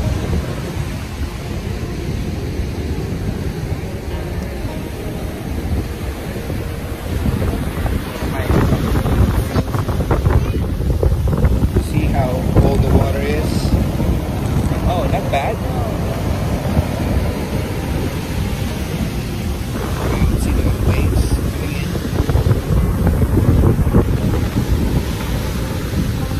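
Waves wash onto the shore in a steady rush.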